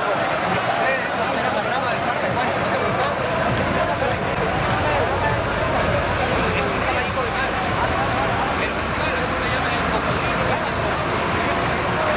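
Two elderly men talk to each other up close.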